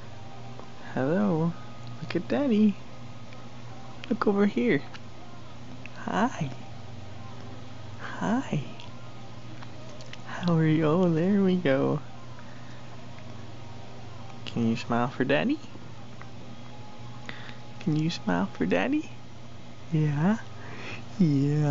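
A baby coos and babbles up close.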